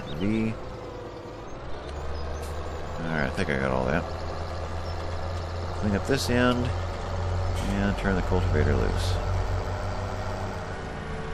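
A tractor engine rumbles steadily.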